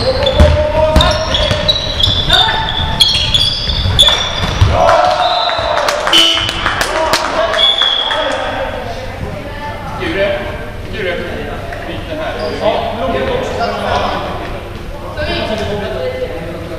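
Young players shout and call out across an echoing hall.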